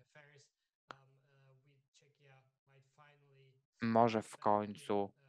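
A man speaks calmly over an online call, his voice suddenly growing louder near the end.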